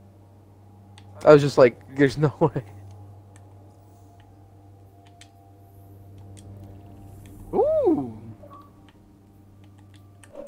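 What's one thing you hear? Soft interface clicks and whooshes sound as menus change.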